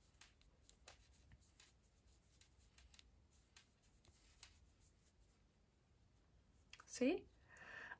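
A crochet hook softly scrapes and rustles through yarn.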